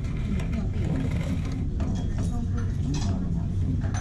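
A ceramic bowl is set down on a metal table with a clink.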